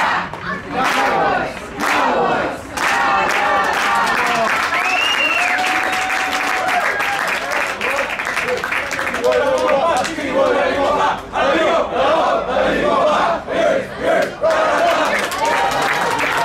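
A crowd of men and women talks and shouts nearby, outdoors.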